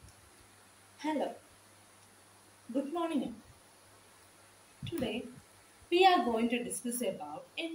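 A young woman speaks close by in short, deliberate phrases with pauses between them.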